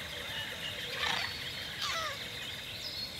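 Small creatures chirp and squeak.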